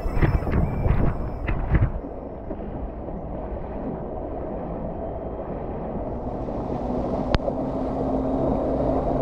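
Water splashes and rushes past a board gliding across the sea.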